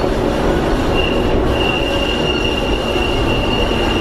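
A tram's motor whines high and steady.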